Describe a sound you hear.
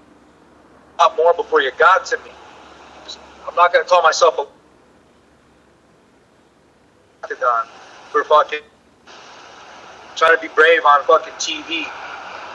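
A man talks with animation over a phone's video call.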